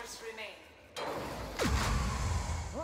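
A magical blast bursts with a whoosh.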